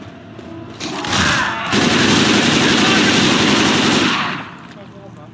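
An assault rifle fires in rapid bursts.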